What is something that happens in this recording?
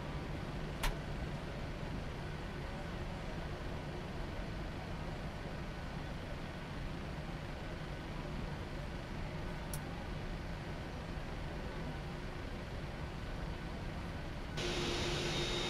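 Jet engines hum low and steady from inside a cockpit.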